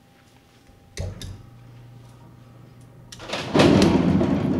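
Plastic balls drop with a clatter from their racks.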